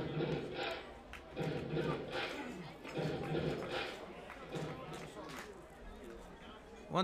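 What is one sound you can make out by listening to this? A crowd murmurs in an open-air stadium.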